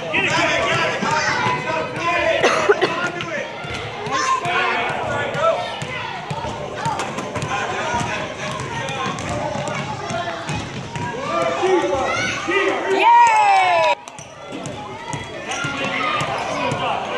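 Young children shout and chatter in a large echoing gym.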